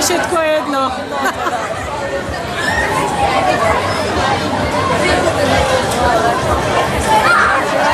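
A crowd of onlookers chatters nearby.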